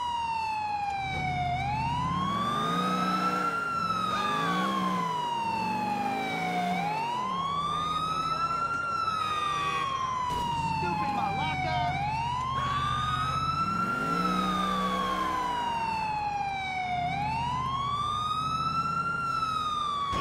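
A car engine revs as the car speeds up and slows down.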